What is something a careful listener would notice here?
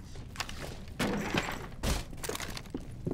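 A wooden barricade splinters under heavy blows.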